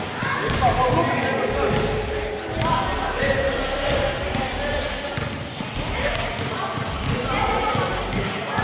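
Teenage boys talk and call out in a large echoing hall.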